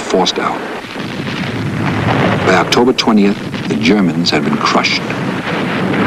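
An artillery gun fires with loud booms.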